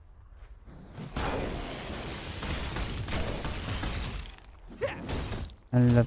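Magical blasts and impacts crash during a fight.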